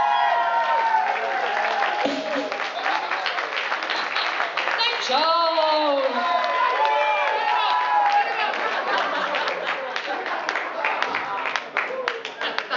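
A crowd claps and cheers in a hall.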